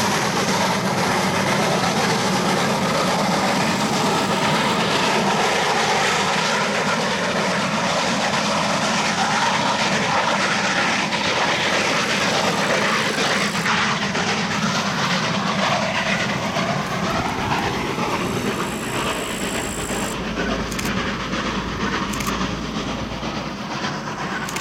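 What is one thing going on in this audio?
A steam locomotive chugs loudly close by.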